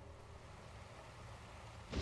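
Heavy rain splashes onto water.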